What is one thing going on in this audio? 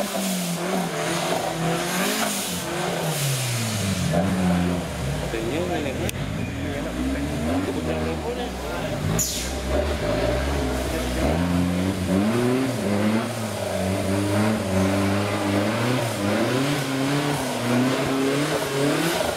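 An off-road truck engine revs hard, rising and falling.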